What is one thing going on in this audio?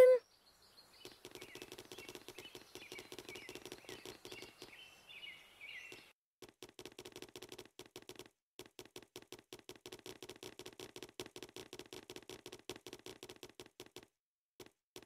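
Light footsteps patter on grass.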